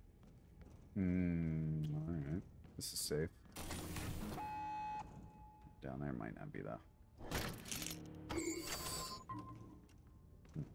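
Short electronic game sound effects burst, whoosh and chime.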